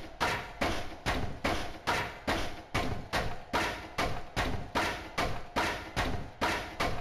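A crowbar strikes a wooden crate again and again in a fast, steady rhythm.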